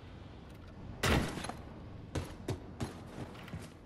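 A rifle fires a few loud shots in a hard, echoing corridor.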